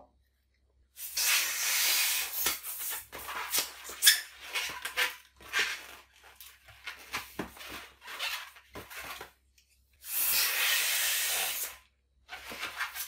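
A hand pump hisses as it blows air into a balloon.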